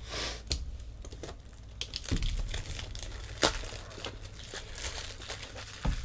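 Hard plastic card cases click and rattle in someone's hands.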